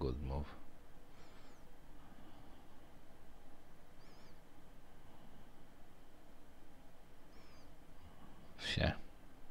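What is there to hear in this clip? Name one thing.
A man speaks quietly into a headset microphone.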